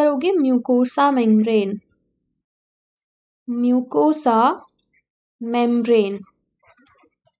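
A young woman speaks calmly into a microphone, in short phrases with pauses.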